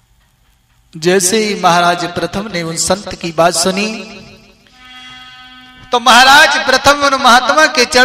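A man sings loudly and with feeling.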